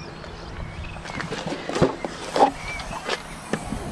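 A car's tailgate clicks open and lifts.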